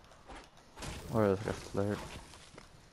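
A pickaxe strikes a tree trunk with hollow thuds.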